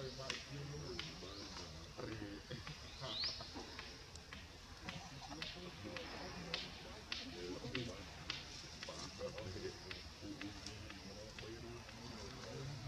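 Bamboo stems creak and tap as a monkey clambers along them.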